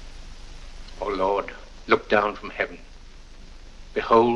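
An elderly man speaks solemnly, as if in prayer.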